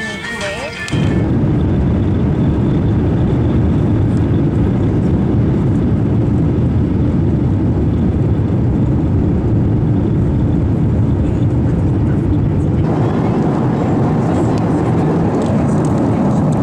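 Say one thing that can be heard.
A jet engine roars loudly and steadily as a plane takes off.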